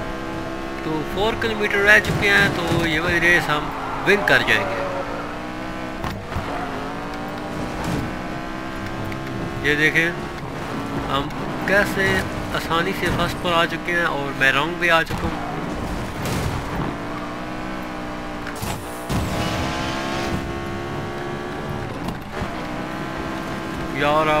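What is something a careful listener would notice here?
A race car engine roars at high revs.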